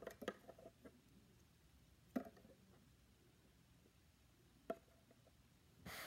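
A small plastic toy figure taps down onto a hard surface.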